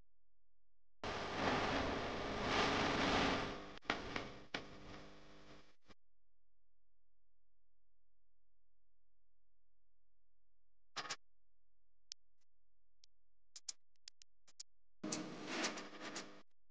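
Small objects clatter and knock against a metal wire rack.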